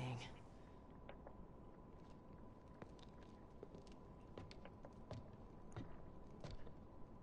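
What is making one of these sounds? Footsteps creak up wooden stairs.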